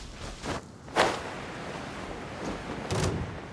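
A glider whooshes open in the wind.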